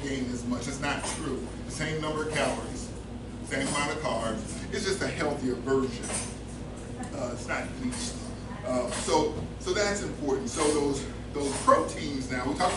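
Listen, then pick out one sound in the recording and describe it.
A man speaks steadily and calmly to an audience in a room with a slight echo.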